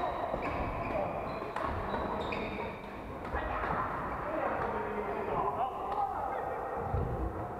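Shuttlecocks are struck with rackets in sharp, irregular pops.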